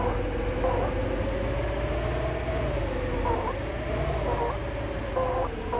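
A truck engine hums steadily, rising and falling slightly in pitch.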